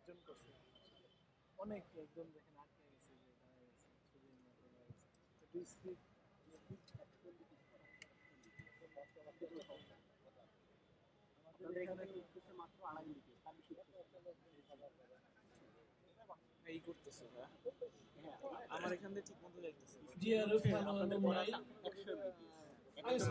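A man speaks over a loudspeaker outdoors, with echo.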